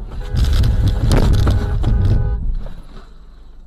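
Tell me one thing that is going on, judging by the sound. Tyres roar loudly on a road as a car drives.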